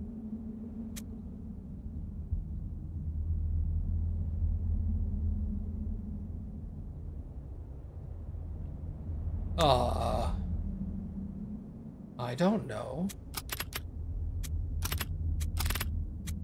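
A man talks quietly and calmly into a nearby microphone.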